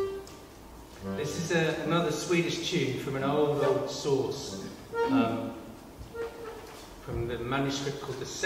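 A fiddle plays a tune.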